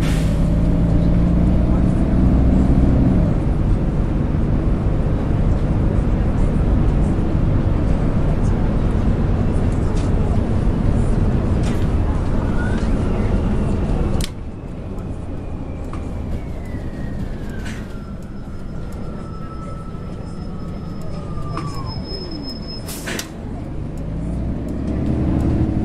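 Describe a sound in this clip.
A bus engine rumbles and drones as the bus drives along.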